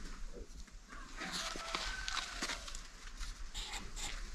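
Kittens mew softly.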